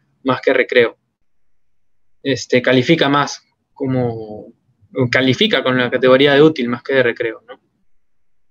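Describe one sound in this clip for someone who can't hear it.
A young man speaks with animation through an online call microphone.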